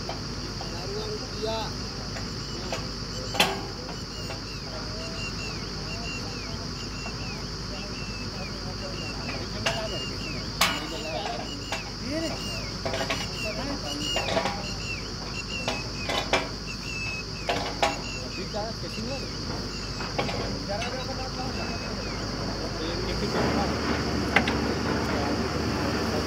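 A drilling rig's engine rumbles steadily outdoors.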